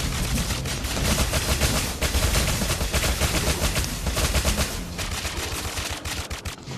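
Magic spells burst and crackle in quick succession.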